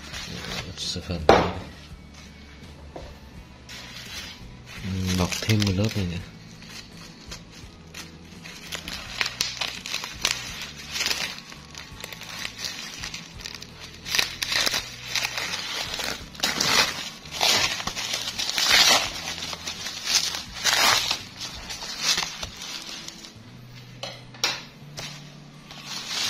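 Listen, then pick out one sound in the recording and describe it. Bubble wrap crinkles and rustles under a hand.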